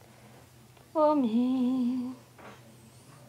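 A woman briefly lets out a loud, drawn-out vocal sound close by.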